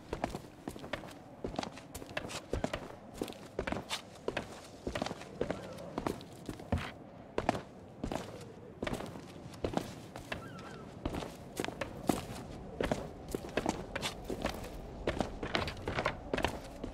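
Footsteps crunch steadily on rock and gravel.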